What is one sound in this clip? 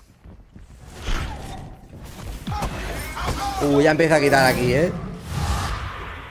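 Magic spells whoosh and crackle in bursts.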